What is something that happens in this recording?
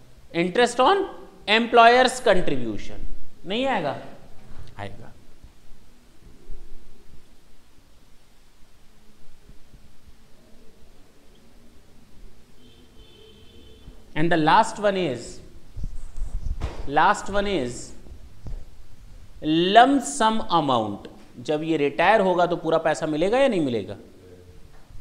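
A man speaks calmly and clearly, close to a microphone, explaining at a steady pace.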